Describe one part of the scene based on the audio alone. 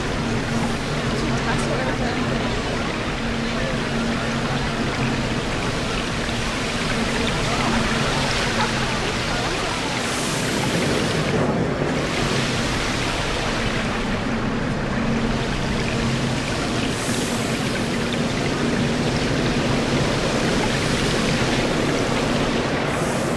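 Water rushes and splashes steadily.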